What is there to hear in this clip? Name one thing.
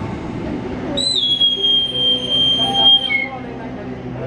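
A conductor blows a sharp, shrill whistle.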